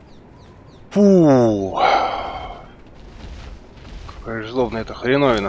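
A large creature groans and roars.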